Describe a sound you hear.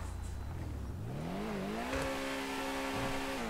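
A racing car engine revs up and holds a higher hum.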